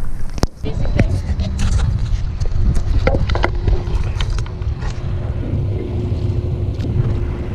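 A kayak paddle dips and splashes in the water.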